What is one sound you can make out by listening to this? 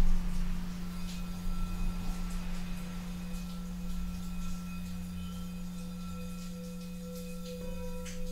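Bowls ring out with new bell-like tones that linger.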